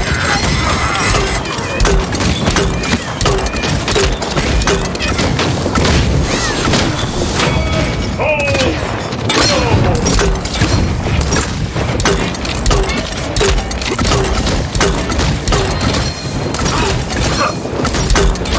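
A video game weapon fires repeated rapid shots.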